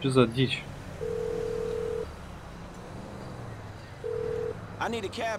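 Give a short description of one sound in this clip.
A phone call rings out with long, steady beeps.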